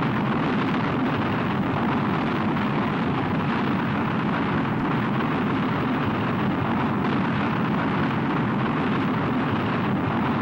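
A rocket engine roars with a steady, deep rumble.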